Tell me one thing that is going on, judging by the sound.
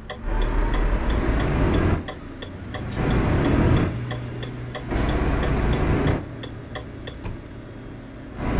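A turn signal ticks rapidly.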